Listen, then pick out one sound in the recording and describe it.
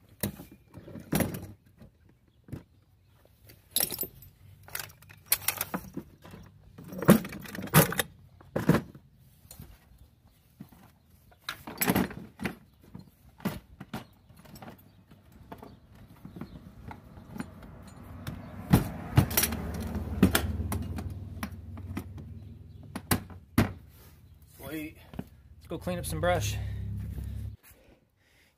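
Plastic and metal gear clatters and knocks close by.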